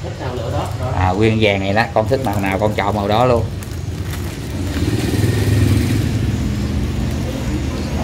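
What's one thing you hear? Plastic packaging crinkles as hands handle it.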